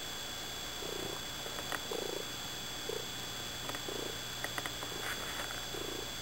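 A cat purrs right up close.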